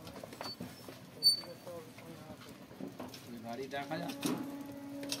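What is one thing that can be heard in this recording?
A motorbike rattles and scrapes as it is pushed under a barrier.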